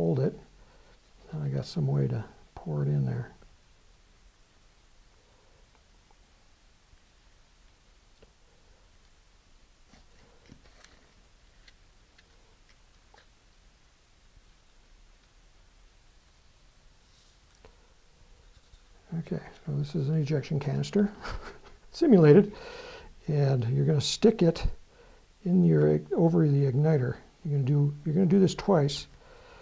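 A man talks calmly and close by, pausing between phrases.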